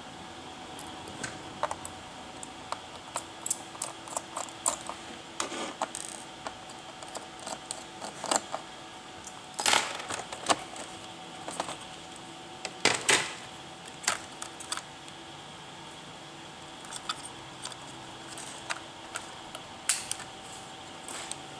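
Plastic parts click and snap as a laptop case is pried open.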